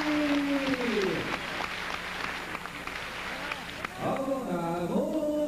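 A man announces through a loudspeaker in long, drawn-out calls that echo in a large hall.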